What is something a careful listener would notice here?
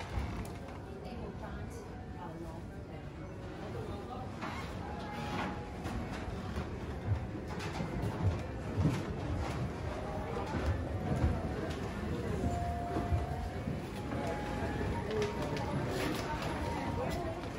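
A crowd murmurs in a large indoor hall.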